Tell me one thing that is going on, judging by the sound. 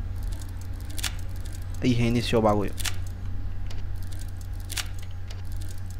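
Metal lock pins click as a lock is picked.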